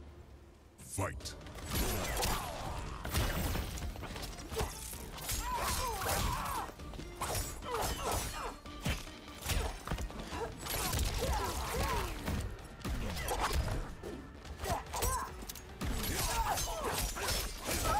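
Heavy punches and kicks land with loud thuds and smacks.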